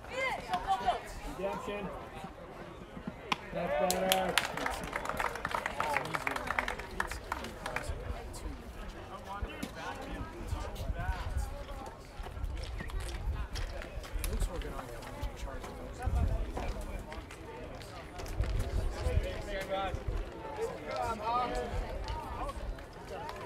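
Players call out to each other across an open outdoor field.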